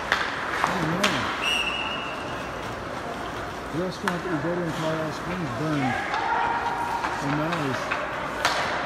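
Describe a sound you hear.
A man shouts out instructions from across the rink.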